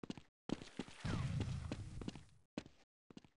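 A grenade explodes with a deep rumbling boom.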